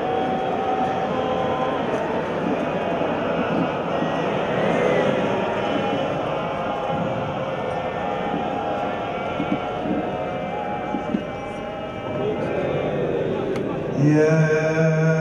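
A large crowd of worshippers murmurs and chants prayers outdoors.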